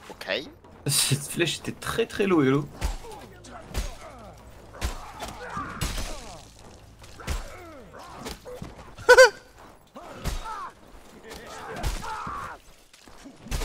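A man shouts and groans in pain while fighting.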